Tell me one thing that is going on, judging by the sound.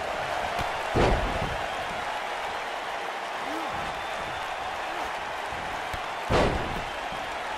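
A heavy body slams onto a ring mat with a loud thud.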